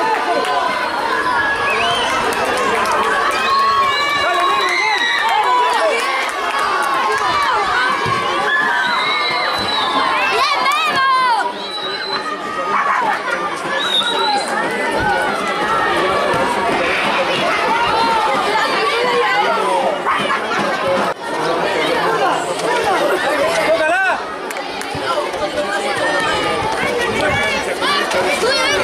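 Children shout and call out excitedly across an open outdoor court.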